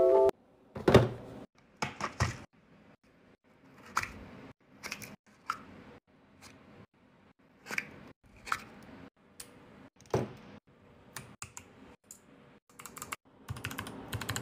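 Small plastic pieces click as they are handled.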